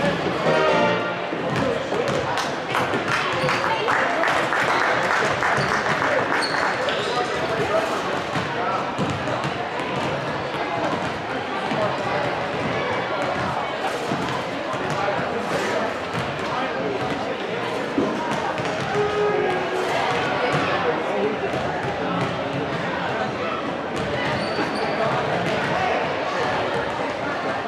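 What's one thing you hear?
A drummer beats out a steady rhythm on a drum kit.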